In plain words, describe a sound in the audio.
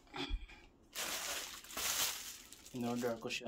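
A plastic mailer bag crinkles as it is handled.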